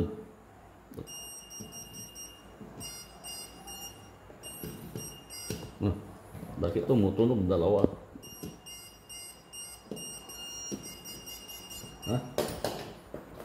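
A voltage tester beeps rapidly in short bursts.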